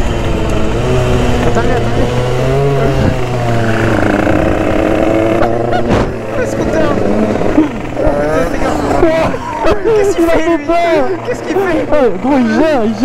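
A motorcycle engine revs up and down close by.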